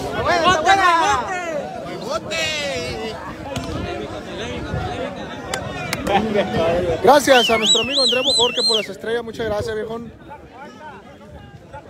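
A large crowd outdoors shouts and cheers loudly.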